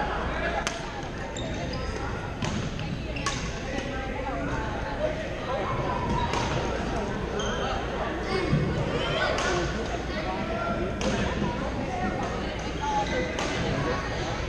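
Shuttlecocks are struck with sharp pops of rackets, echoing in a large hall.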